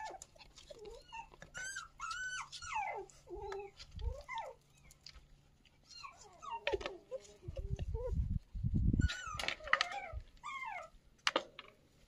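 Puppies whimper and whine in high, wavering cries.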